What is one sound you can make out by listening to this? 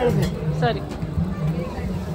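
Flatbreads sizzle on a hot griddle.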